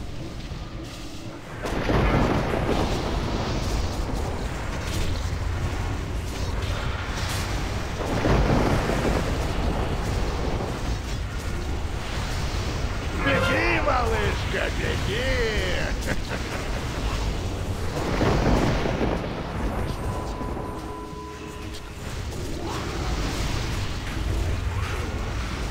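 Spell effects crackle and boom during a fierce game battle.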